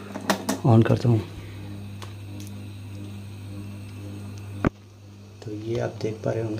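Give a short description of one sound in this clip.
An electrical unit hums steadily after being switched on.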